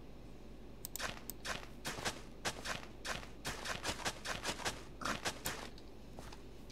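A hoe digs into soil in quick repeated strokes.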